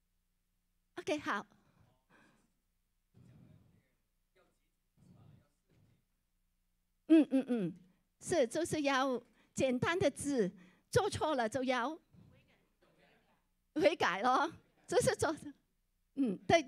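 A woman speaks into a microphone over loudspeakers in a large room, with pauses between phrases.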